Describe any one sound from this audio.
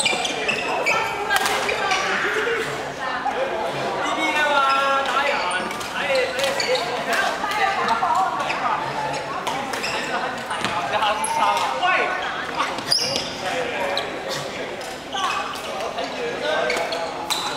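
Voices of players chatter and call out across the echoing hall.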